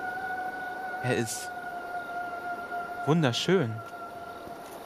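A young man speaks briefly into a microphone, with animation.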